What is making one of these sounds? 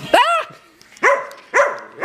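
A dog howls nearby.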